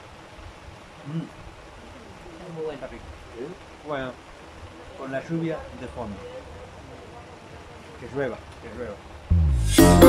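A man talks calmly and close by.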